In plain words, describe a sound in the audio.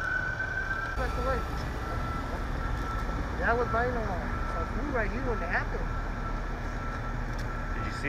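A fire truck engine idles nearby with a low, steady rumble.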